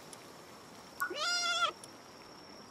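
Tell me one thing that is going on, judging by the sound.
A small cartoon creature gives a short, bleating cry.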